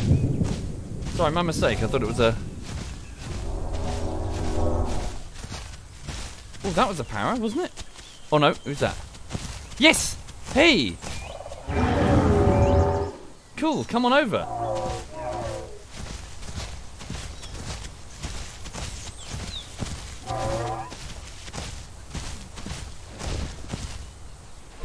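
Heavy footsteps of a large creature thud on grass and earth.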